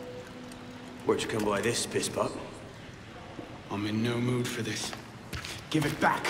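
A middle-aged man speaks gruffly and with animation, close by.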